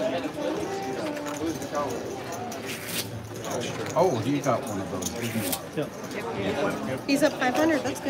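Casino chips clack together.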